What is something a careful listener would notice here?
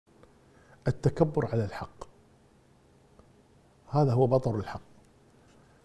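An elderly man speaks calmly and firmly into a close microphone, in short phrases with pauses.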